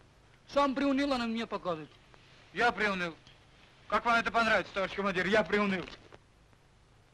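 A man speaks in a low, serious voice at close range.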